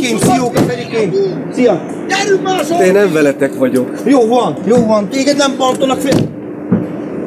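Two men talk loudly and with animation close by.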